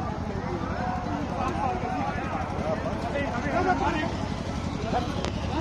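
Several men argue loudly and shout over each other nearby, outdoors.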